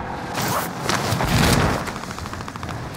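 A parachute snaps open with a flapping whoosh.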